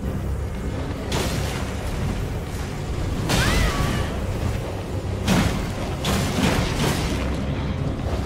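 A low rumbling drone fills a large echoing space.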